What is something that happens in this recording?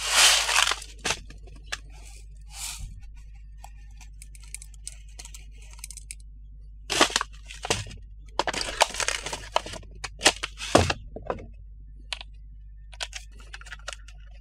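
Plastic parts click and clatter against a wooden table.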